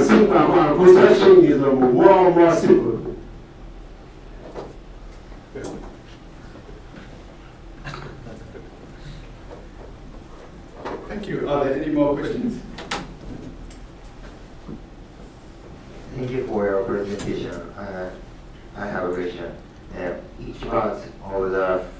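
A man speaks calmly to a room, with a slight echo.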